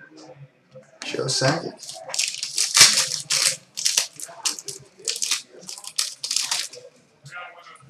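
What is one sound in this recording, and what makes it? Foil card wrappers crinkle and rustle close by.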